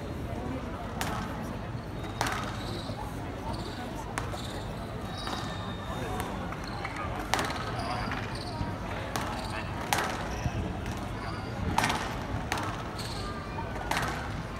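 A squash ball smacks sharply against the walls and rackets in a rally.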